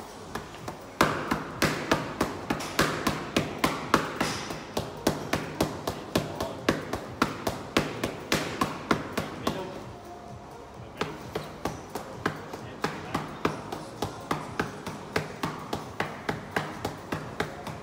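Boxing gloves smack against focus pads in rapid combinations.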